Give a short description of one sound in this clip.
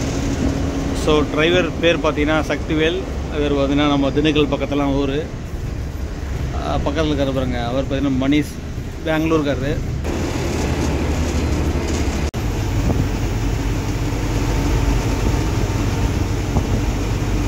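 A bus engine rumbles steadily while driving.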